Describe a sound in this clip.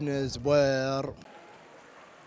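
A young man speaks into a microphone up close.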